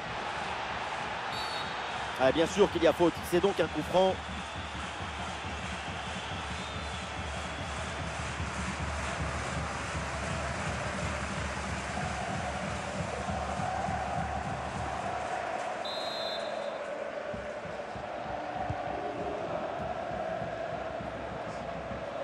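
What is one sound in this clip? A stadium crowd roars and murmurs steadily.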